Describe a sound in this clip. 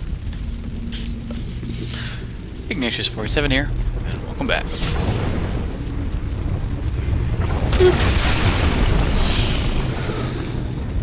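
Fires crackle and rumble low throughout.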